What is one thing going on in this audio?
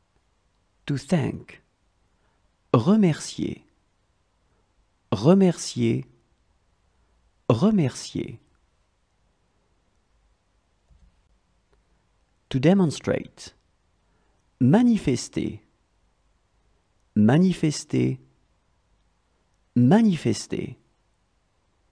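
A woman speaks single words slowly and clearly, close to a microphone, with pauses between them.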